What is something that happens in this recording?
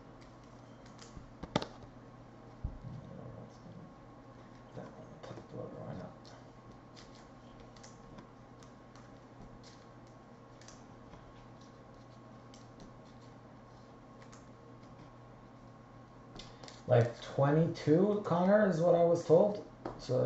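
Trading cards rustle and tap as hands shuffle them.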